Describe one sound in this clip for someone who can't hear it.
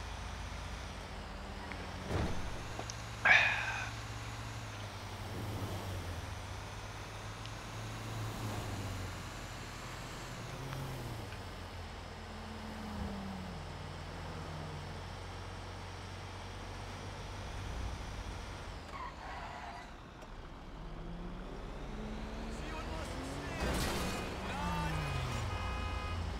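A heavy truck engine rumbles steadily and revs up and down.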